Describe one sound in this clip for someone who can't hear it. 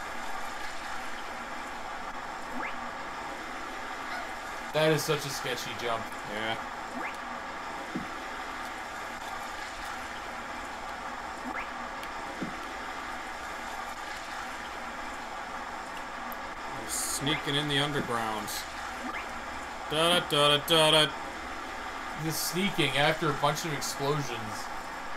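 Water pours and splashes steadily.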